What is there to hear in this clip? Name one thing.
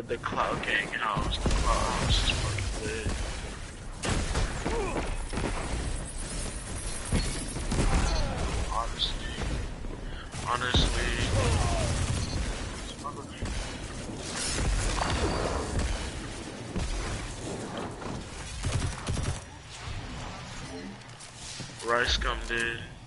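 Gunfire from a game's rifles rattles in bursts.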